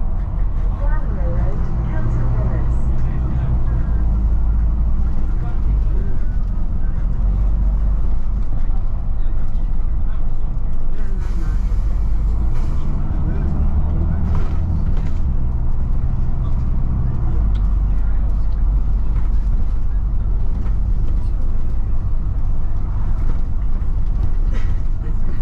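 A bus engine rumbles steadily, rising and falling as it drives along.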